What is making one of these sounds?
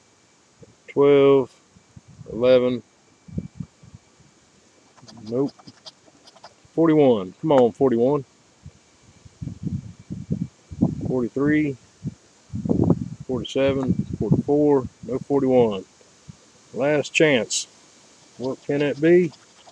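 A coin scratches at a paper ticket.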